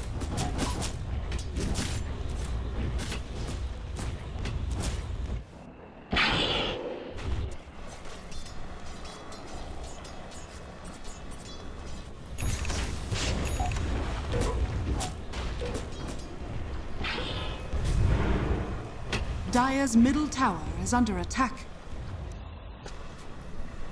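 Video game sound effects of fighting and spells play loudly.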